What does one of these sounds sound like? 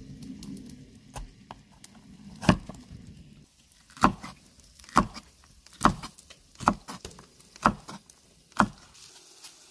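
A knife chops through vegetables on a wooden board.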